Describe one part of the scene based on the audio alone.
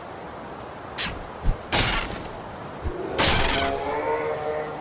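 Sword blows land with sharp, heavy clashes.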